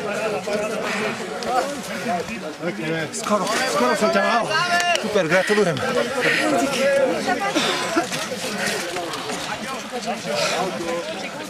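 A crowd of people chatter close by outdoors.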